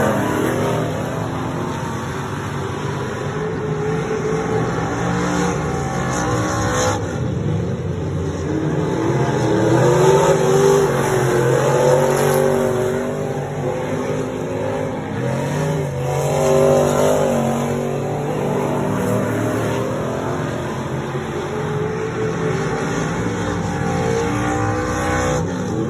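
Race car engines roar and rev loudly outdoors.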